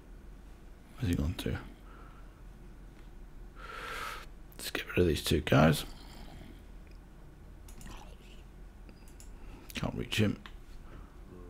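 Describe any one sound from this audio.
A zombie groans in a low, rasping voice.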